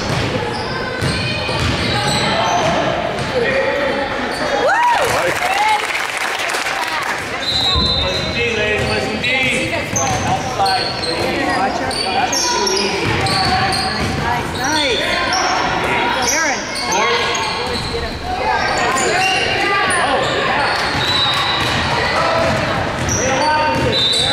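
Sneakers squeak sharply on a court in a large echoing hall.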